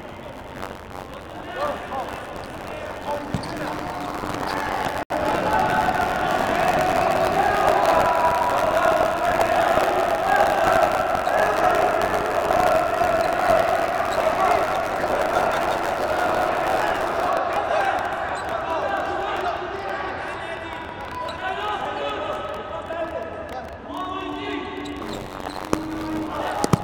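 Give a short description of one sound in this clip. Young men shout and cheer from the side of the court in a large echoing hall.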